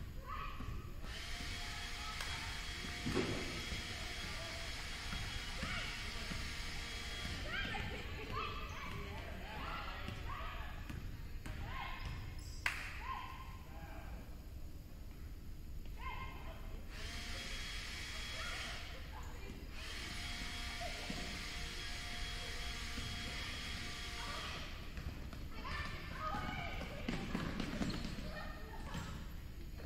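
Sneakers squeak sharply on a wooden court in a large echoing gym.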